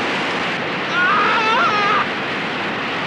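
A man shouts in distress.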